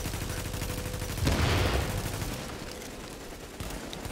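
An explosion booms and hisses.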